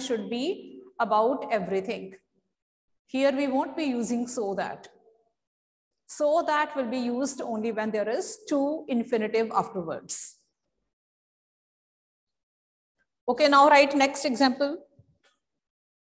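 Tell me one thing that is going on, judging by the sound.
A woman speaks calmly and clearly nearby, in short phrases with pauses.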